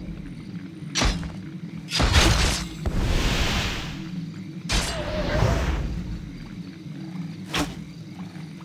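Sharp game impact sounds strike a few times.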